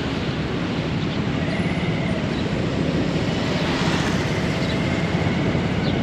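A motorbike rides past with a buzzing engine.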